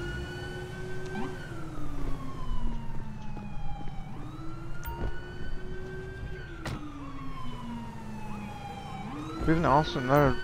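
A car engine revs up and shifts through gears as the car drives off.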